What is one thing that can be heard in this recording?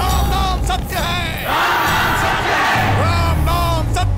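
A middle-aged man shouts with excitement.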